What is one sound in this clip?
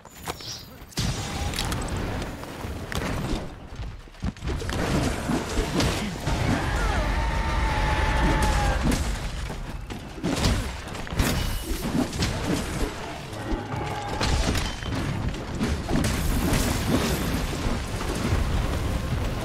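Heavy weapon blows clang and thud against a monster.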